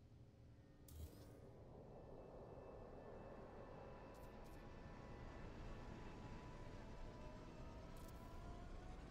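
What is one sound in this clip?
A low electronic hum slowly swells.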